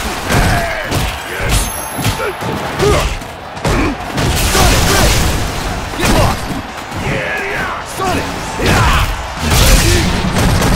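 Heavy punches and kicks land with loud thuds and smacks.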